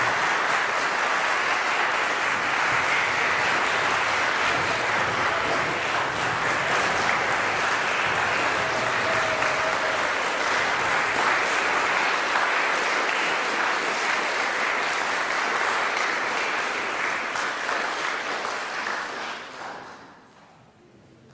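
An audience applauds loudly in a hall, then dies away.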